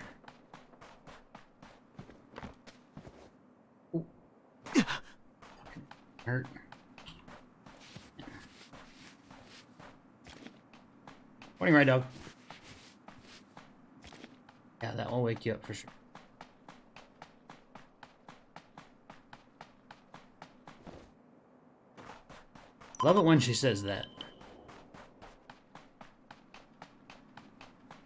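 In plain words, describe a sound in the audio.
Footsteps crunch quickly and steadily on snow.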